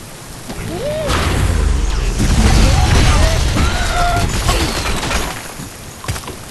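Wooden blocks crash and topple as a structure collapses.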